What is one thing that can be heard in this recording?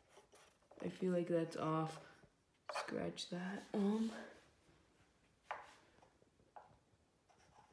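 A pencil scratches on a wooden board.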